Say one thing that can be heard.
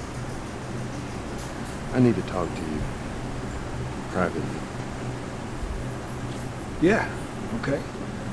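A second man speaks in a low, gruff voice.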